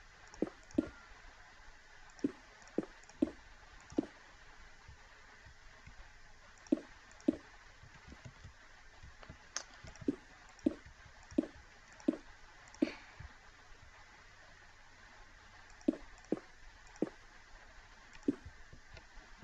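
Stone blocks thud as they are placed, one after another.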